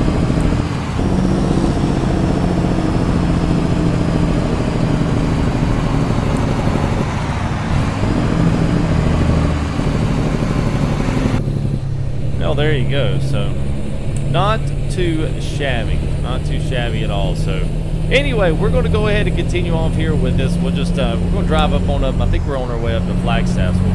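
A truck engine drones steadily as the truck drives along a road.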